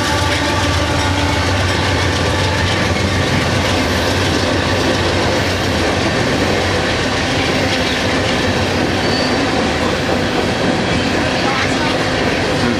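A diesel freight locomotive rumbles past with its engine labouring.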